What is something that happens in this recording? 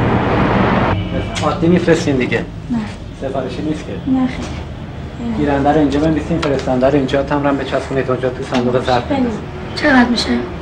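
A man speaks calmly nearby, asking questions and giving instructions.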